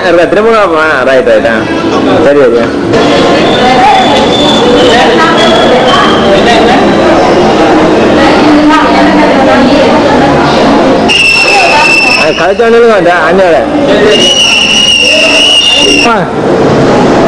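Several men and women chatter nearby.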